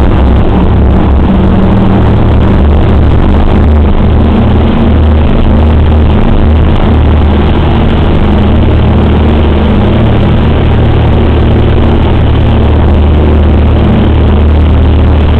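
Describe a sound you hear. The radial piston engines of a four-engine bomber drone in flight, heard from inside the fuselage.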